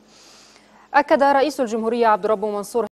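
A young woman reads out the news clearly through a microphone.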